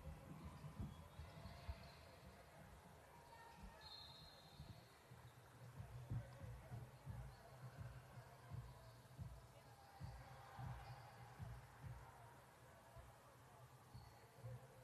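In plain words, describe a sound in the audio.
Young girls call out to each other across the court.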